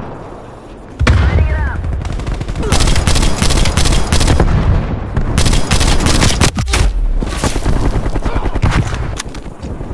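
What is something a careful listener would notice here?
A rifle fires loud shots in rapid bursts.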